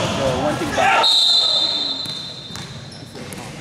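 A referee's whistle blows a long, shrill blast in an echoing hall.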